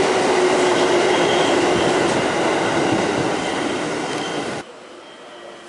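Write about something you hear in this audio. A train rushes past close by with a loud rumble.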